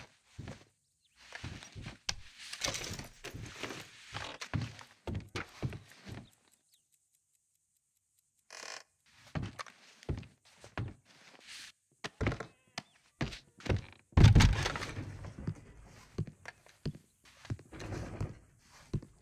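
Boots thud on wooden floorboards.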